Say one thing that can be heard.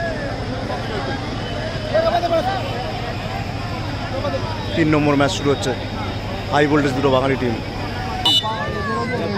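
Young men talk and shout to each other close by.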